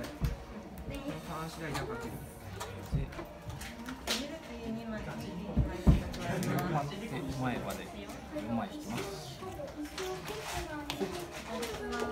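Cards riffle and shuffle in a person's hands.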